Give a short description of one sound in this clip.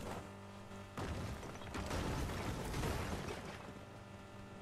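Stone structures crash and crumble as a buggy smashes through them.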